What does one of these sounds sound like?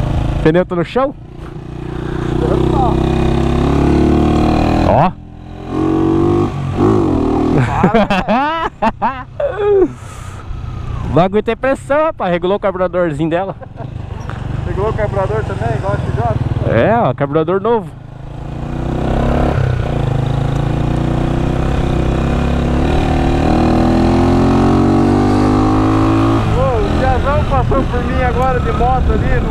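A motorcycle engine rumbles and revs up through the gears.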